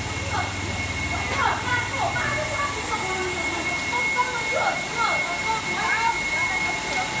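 Women talk nearby.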